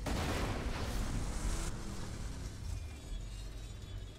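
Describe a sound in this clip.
A vehicle engine rumbles low and steadily.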